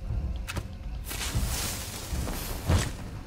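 A flare hisses as it burns.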